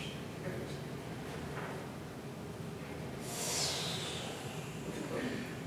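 A film soundtrack plays through loudspeakers in a room.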